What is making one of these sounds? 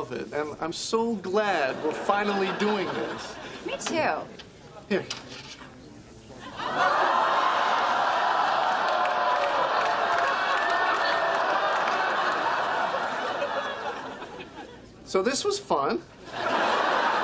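A man speaks cheerfully and close by.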